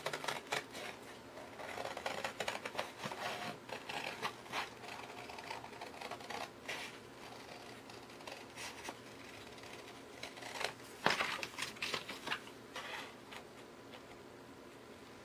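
Scissors snip through thick paper.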